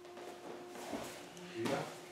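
A man falls heavily onto a mat.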